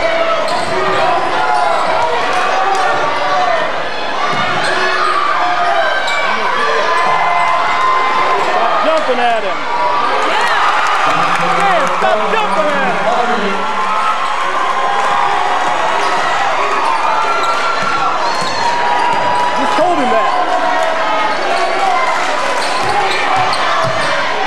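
Sneakers squeak sharply on a hardwood floor in a large echoing gym.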